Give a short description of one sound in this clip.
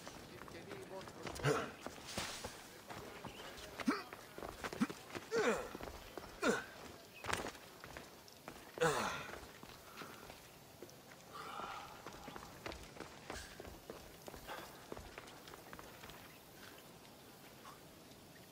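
Footsteps patter quickly on stone paving.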